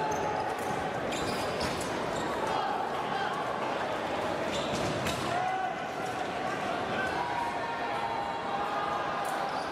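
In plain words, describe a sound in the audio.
Sneakers squeak on the floor as fencers move.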